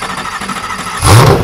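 A sports car engine revs with a sudden loud roar.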